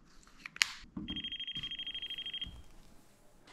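An electrical tester beeps with a steady high tone.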